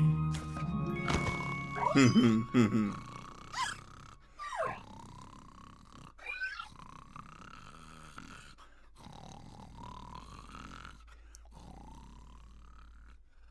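A cartoon man snores loudly in long, rising breaths.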